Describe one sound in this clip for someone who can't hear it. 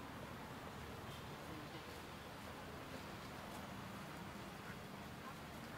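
Footsteps scuff on a paved path.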